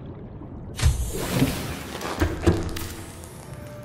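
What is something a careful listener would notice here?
Water drains away with a rushing gurgle.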